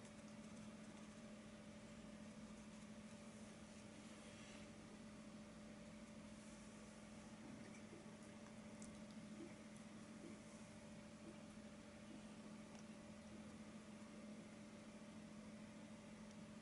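A paintbrush brushes softly across a canvas.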